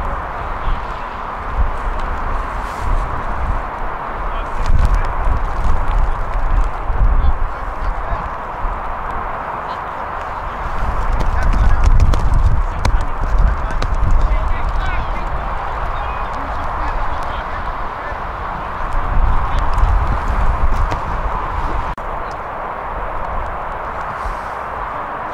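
Wind gusts outdoors, rumbling against the microphone.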